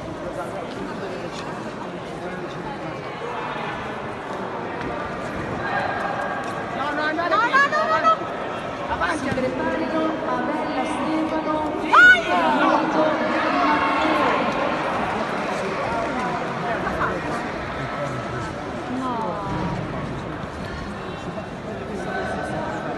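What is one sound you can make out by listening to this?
Spectators shout encouragement in a large echoing hall.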